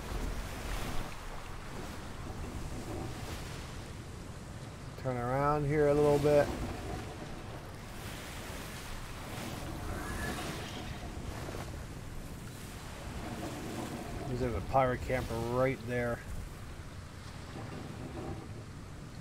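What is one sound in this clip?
Waves wash and splash against a sailing ship's hull.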